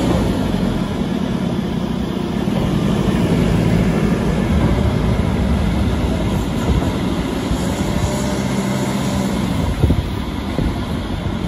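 A loader's diesel engine rumbles steadily close by.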